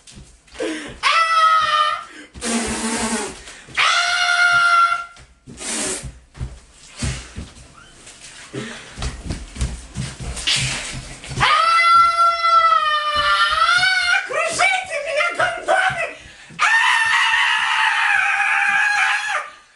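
A young man yells in long drawn-out cries close by.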